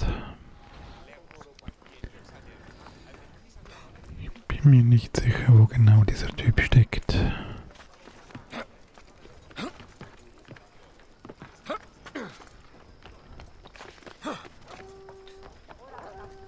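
Footsteps patter softly on stone and roof tiles.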